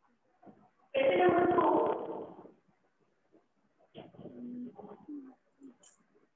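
A woman speaks clearly and loudly.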